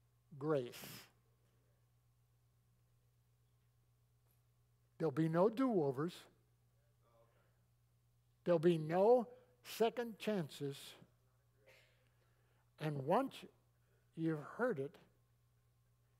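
An older man preaches with animation through a microphone, in short bursts with pauses.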